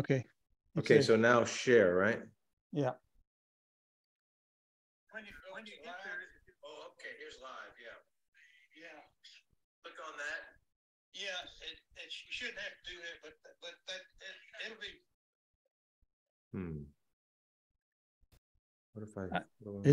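A man speaks calmly into a close microphone, heard through an online call.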